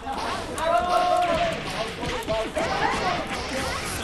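Blades slash and strike in quick, sharp hits.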